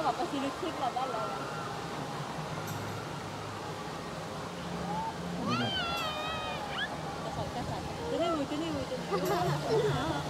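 Water rushes and churns around a raft.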